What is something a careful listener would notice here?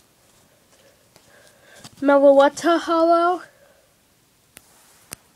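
A card rustles softly as a hand handles it.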